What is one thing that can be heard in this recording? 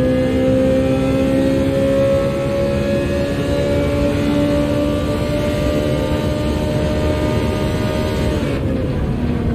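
A racing car engine roars at high revs, slowly climbing in pitch.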